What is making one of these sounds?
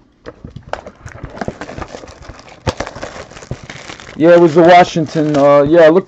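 Plastic wrap crinkles close by.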